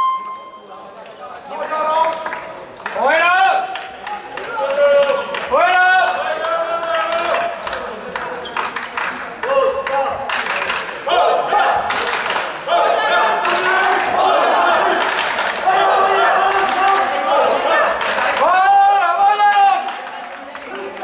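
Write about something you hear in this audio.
A crowd of fans chants and sings loudly in a large echoing hall.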